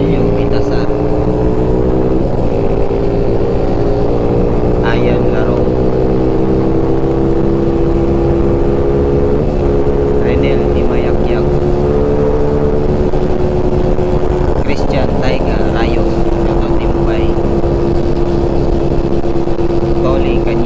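A motorcycle engine pulls hard and shifts up through the gears.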